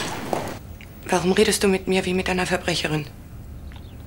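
A man speaks calmly indoors.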